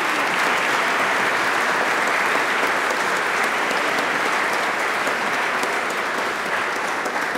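An audience applauds in a big echoing hall.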